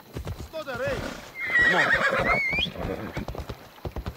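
A horse's hooves clatter on a hollow wooden bridge.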